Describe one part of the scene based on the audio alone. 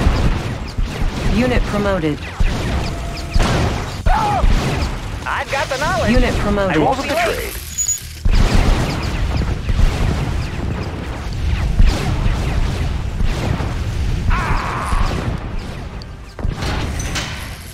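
Gunfire crackles in rapid, dense bursts.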